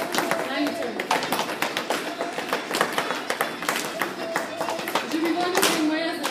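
Dancers' shoes stamp and tap rhythmically on a hard floor in an echoing hall.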